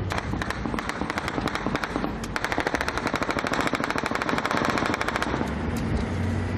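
A vehicle engine rumbles while driving over rough ground.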